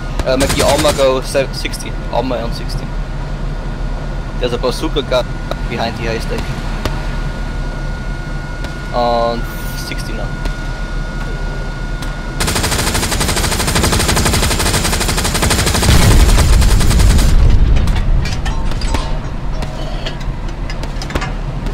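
A heavy tank engine rumbles low and steady.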